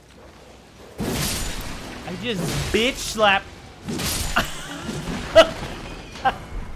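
A sword swishes and strikes bony enemies with sharp hits.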